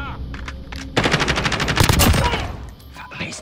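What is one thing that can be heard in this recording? A rifle fires rapid bursts of shots nearby.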